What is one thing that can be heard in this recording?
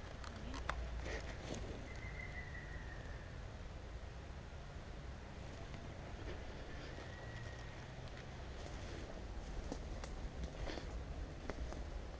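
Footsteps crunch and rustle through dry leaf litter and twigs.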